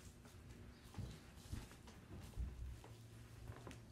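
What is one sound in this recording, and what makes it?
A walking boot thumps on the floor.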